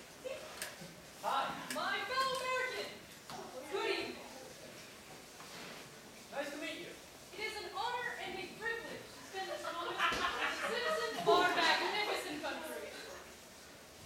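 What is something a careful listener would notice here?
A young woman speaks theatrically on a stage in a large echoing hall.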